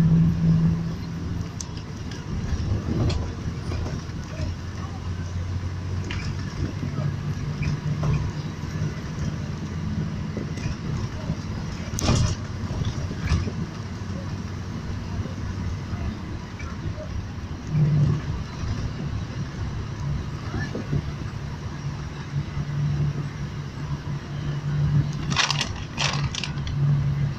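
Tyres roll along the road with a low rumble.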